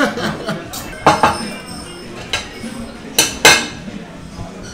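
Metal utensils clink against plates.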